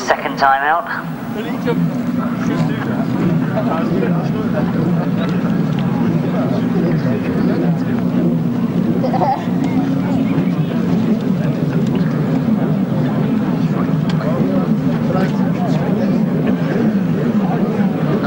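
Several motorcycle engines rev and drone steadily at a distance.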